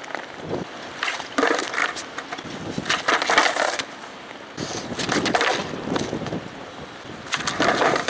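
A skateboard clacks sharply as it lands on concrete.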